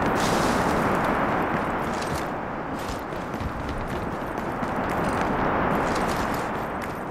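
Strong wind roars steadily.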